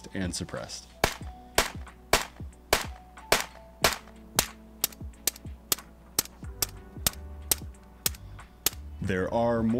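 A rifle fires sharp shots in quick succession.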